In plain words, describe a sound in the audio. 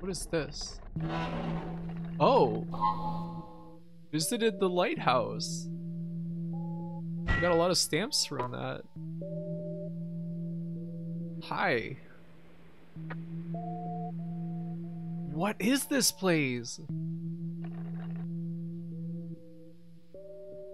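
Slow, eerie music plays with steady held notes.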